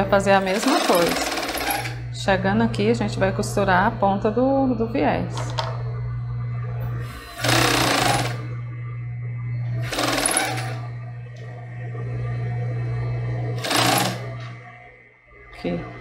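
A sewing machine whirs steadily as it stitches.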